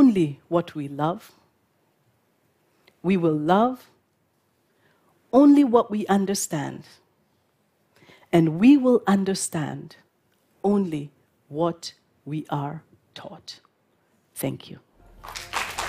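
A woman speaks calmly and clearly through a microphone, with pauses.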